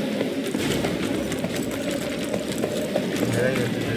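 Footsteps run over a stone floor.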